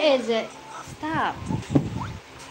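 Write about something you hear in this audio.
A little girl chatters and squeals close by.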